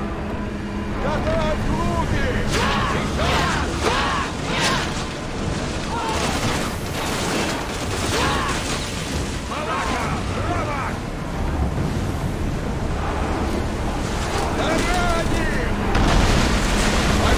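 Men shout and cry out in battle.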